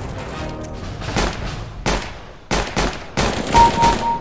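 A pistol fires single sharp shots.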